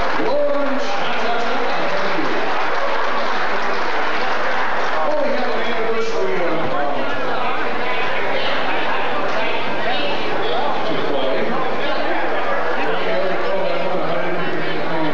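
A big band plays brassy swing music in a large hall.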